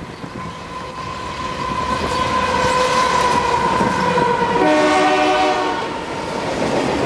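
A model train's horn sounds loudly, then blares in short bursts.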